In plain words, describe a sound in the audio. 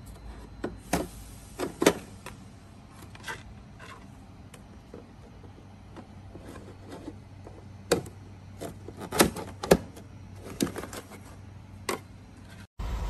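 Plastic parts click and rattle as a dust bag is handled.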